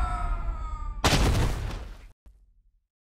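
A body crashes onto a hard floor with a burst of noise.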